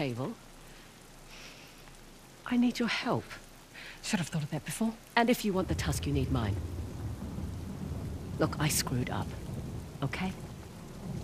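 A young woman speaks calmly and earnestly, close by.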